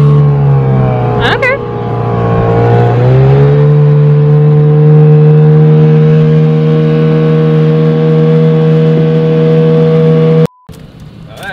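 A boat motor drones steadily close by.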